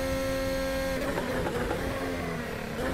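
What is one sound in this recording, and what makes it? A racing car engine sputters and crackles as it slows down.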